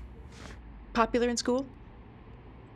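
A middle-aged woman speaks calmly and close by.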